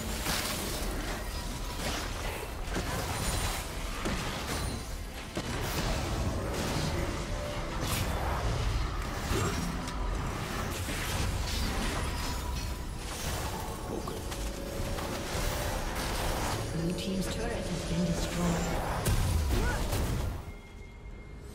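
Magic spells burst and blows clash in a hectic fight.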